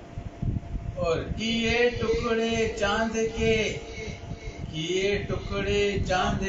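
An elderly man recites in a melodic chanting voice through a microphone.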